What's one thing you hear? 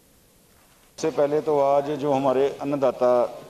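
A man speaks firmly, close to a microphone.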